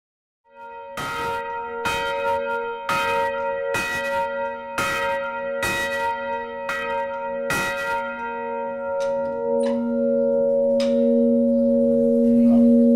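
A large church bell swings and rings with loud, regular clangs that hum on between strikes.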